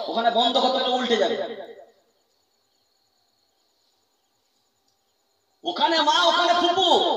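A young man speaks in a loud, sing-song voice through a microphone and loudspeaker, pausing for a few seconds in between.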